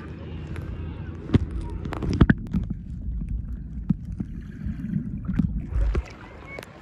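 Muffled underwater gurgling and bubbling rumbles.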